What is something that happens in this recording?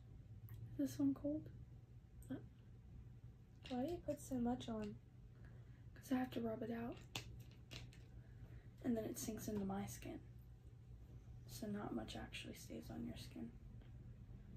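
A young woman speaks softly and calmly nearby, in short phrases.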